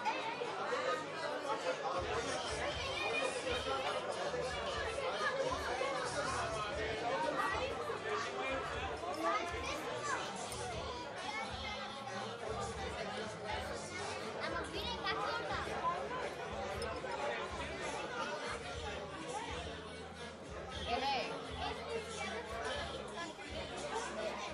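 A crowd of adults and children chatter all around.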